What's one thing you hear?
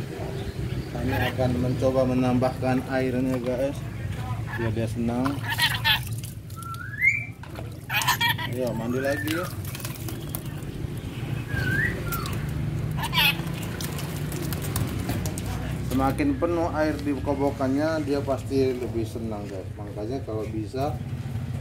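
A parrot chatters and squawks close by.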